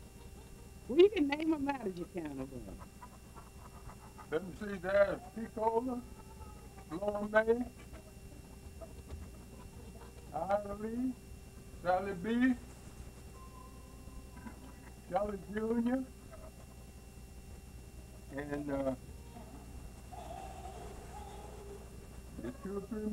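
An elderly man speaks slowly in short phrases, close by, with pauses between them.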